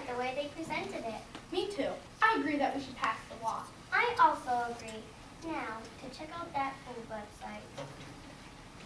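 A girl speaks clearly, acting out lines.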